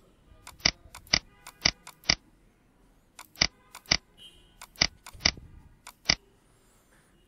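A computer mouse clicks sharply several times.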